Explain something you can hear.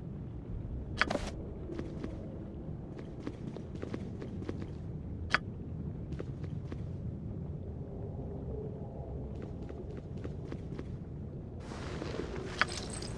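Soft game interface clicks sound now and then.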